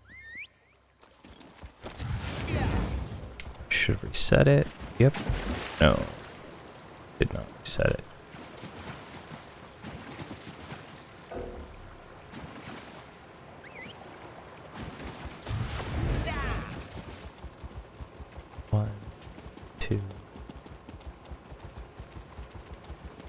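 A horse's hooves gallop steadily.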